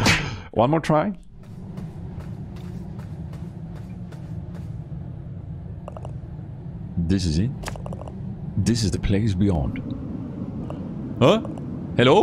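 A young man speaks with animation, close into a microphone.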